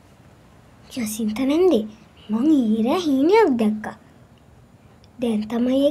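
A young girl speaks in a lively voice close by.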